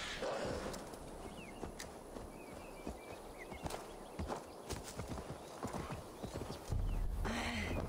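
Footsteps thud softly on the ground at a steady pace.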